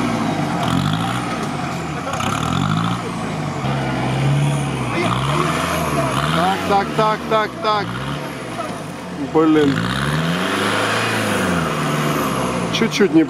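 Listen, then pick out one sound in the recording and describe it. An off-road engine revs hard, rising and falling over and over.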